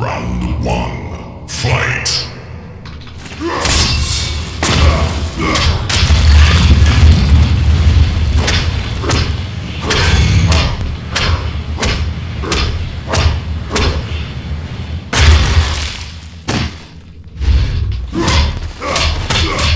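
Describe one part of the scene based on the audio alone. Punches and kicks thud and smack in a fighting game.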